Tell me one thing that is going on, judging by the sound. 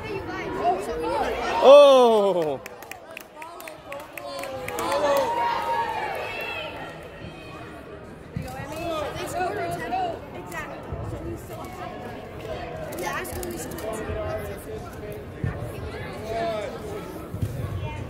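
Young girls shout and call out across a large echoing indoor hall.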